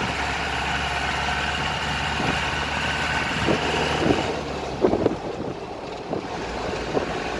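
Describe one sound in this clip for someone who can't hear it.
Tyres roll on asphalt.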